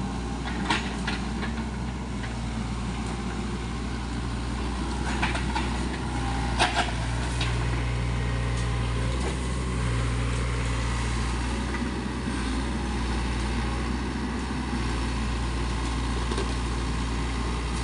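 A mini excavator's diesel engine drones under load.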